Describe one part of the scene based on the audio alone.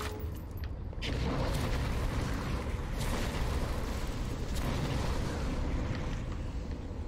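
A burst of fire roars and hisses.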